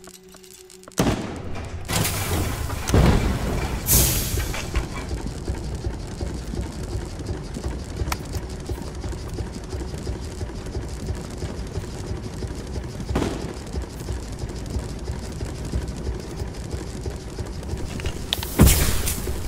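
A spacecraft's thrusters roar with a deep rumble.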